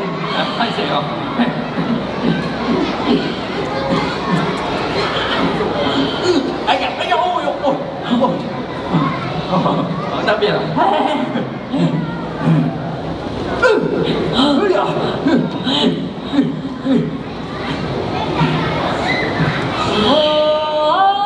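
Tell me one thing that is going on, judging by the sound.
A large crowd of children and adults chatters in an echoing hall.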